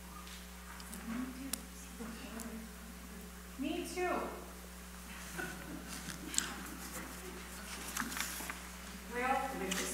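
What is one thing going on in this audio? A young child speaks into a microphone.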